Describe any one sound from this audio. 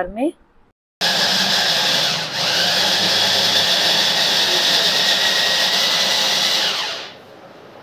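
An electric chopper whirs loudly and steadily, then stops.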